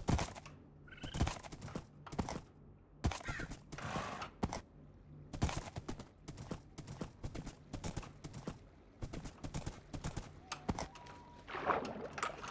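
Hooves clop steadily on the ground.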